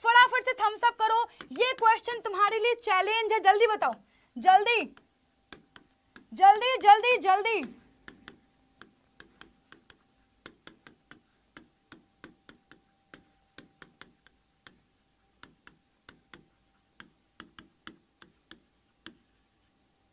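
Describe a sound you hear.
A marker squeaks and taps on a board.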